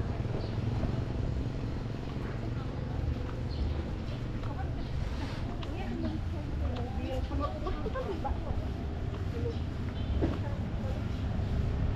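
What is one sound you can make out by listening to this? Footsteps scuff along a paved road outdoors.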